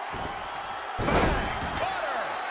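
A wrestler's body slams hard onto the ring mat.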